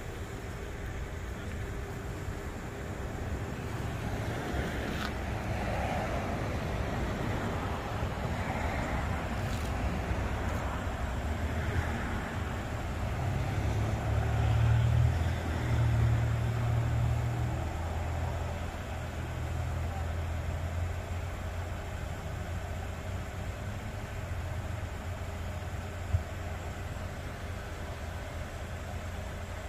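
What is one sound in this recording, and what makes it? A car engine idles nearby with a low steady rumble.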